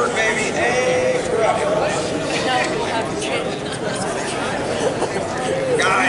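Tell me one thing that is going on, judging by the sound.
A man speaks loudly to a crowd.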